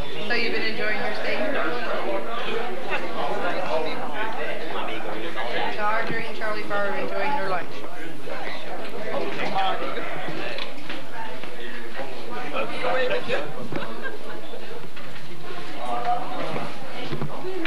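An elderly woman talks close by.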